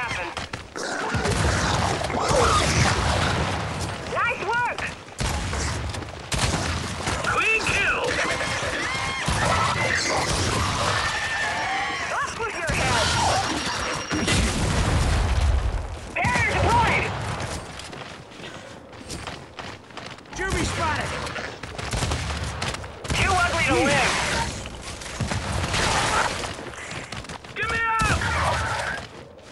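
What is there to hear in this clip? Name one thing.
Gunfire bursts and explosions crackle loudly.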